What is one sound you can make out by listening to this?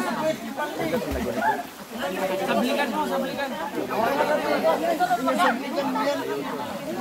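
Water splashes as people move about in it.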